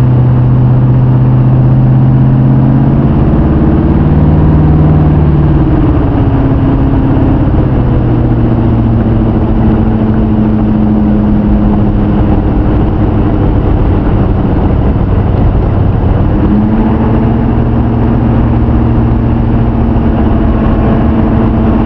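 A car engine hums loudly and steadily, its pitch shifting as the car changes speed.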